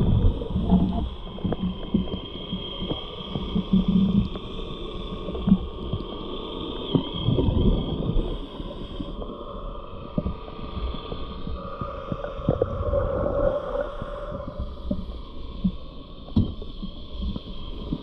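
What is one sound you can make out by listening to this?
Bubbles gurgle and rush underwater.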